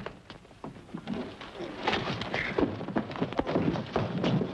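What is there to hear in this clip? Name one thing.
Men scuffle and grapple with heavy thuds.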